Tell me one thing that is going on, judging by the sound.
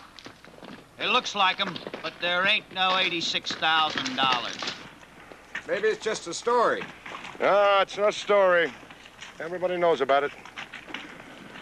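An elderly man speaks calmly and firmly, close by.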